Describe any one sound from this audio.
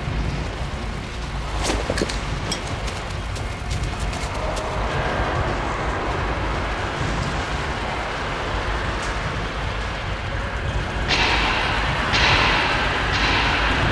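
Heavy rain pours down steadily nearby.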